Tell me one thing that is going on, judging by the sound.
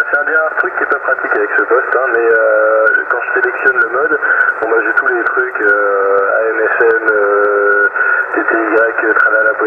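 A radio receiver plays a thin, crackly transmission through its small loudspeaker.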